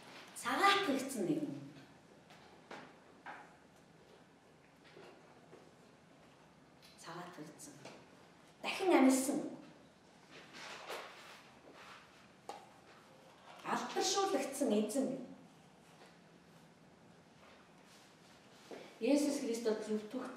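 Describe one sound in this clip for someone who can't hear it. A woman speaks calmly in bursts through a microphone, with pauses between phrases.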